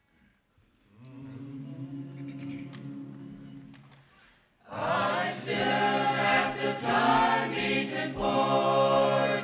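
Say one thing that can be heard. A mixed choir of young men and women sings together in a reverberant hall.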